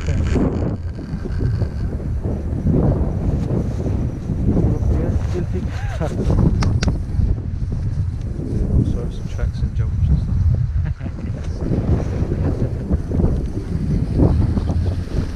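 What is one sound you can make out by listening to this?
Wind buffets loudly outdoors throughout.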